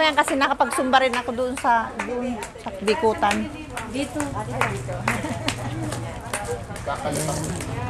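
A middle-aged woman claps her hands nearby.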